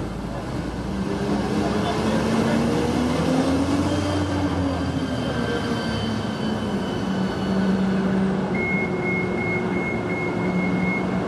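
A bus engine drones as the bus drives past.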